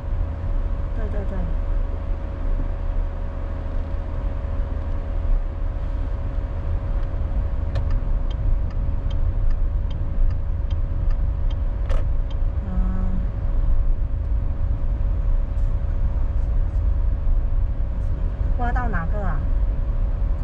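A car engine and tyres rumble steadily from inside a moving car.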